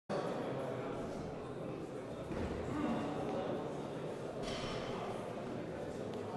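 Men talk quietly in a large echoing hall.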